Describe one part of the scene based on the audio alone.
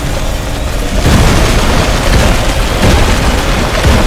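An explosion bursts with a deep roar and debris crashing.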